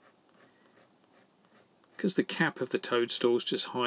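A felt-tip marker squeaks and scratches softly across paper.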